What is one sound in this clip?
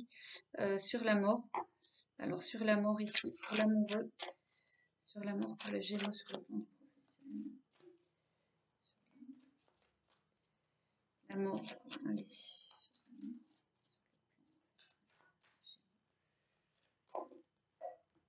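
Playing cards riffle and slide as they are shuffled.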